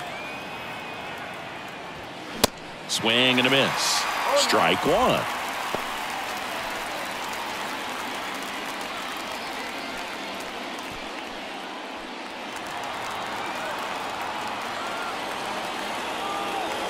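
A crowd murmurs steadily in a large open stadium.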